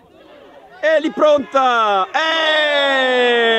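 Young boys shout and cheer loudly outdoors.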